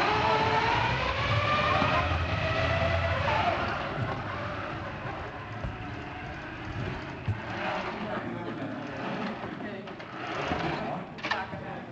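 A robot's electric motors whir as it drives across the floor.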